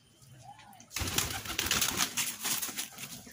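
Pigeon wings flap and rustle close by.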